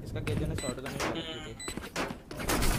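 An electronic device beeps sharply.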